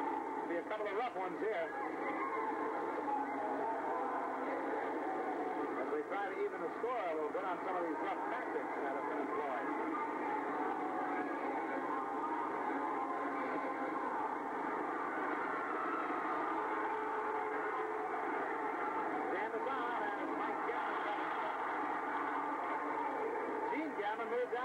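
A crowd cheers and shouts in a large echoing arena.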